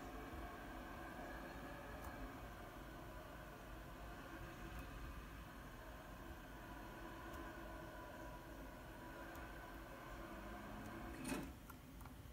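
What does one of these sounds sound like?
Wind rushes steadily from a video game played through speakers.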